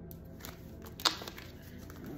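Cards slide and tap against a hard table.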